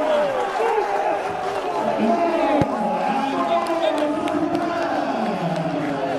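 Young men shout excitedly in celebration outdoors.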